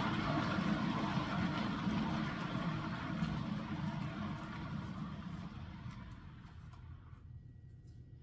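A spinning turntable whirs with a rushing noise that slows and fades away.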